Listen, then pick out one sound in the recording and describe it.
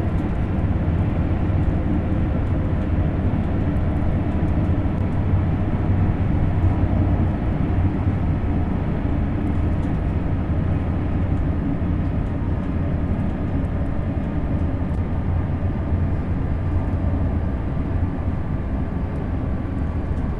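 A high-speed electric train rumbles along the rails at speed.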